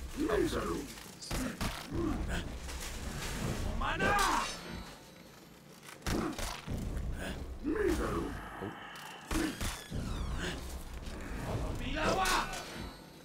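Metal blades clash and clang sharply.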